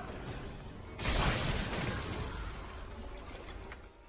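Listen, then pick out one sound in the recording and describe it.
A grenade explodes with a loud blast.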